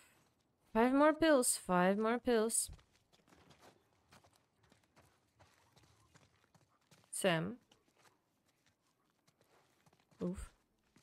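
A young woman talks animatedly into a close microphone, in short bursts.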